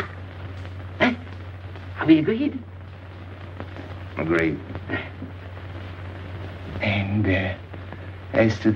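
A middle-aged man speaks in a low, measured voice.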